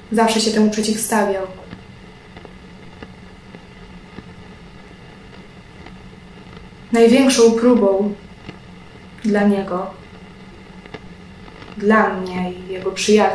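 A young woman speaks calmly and close by, with pauses.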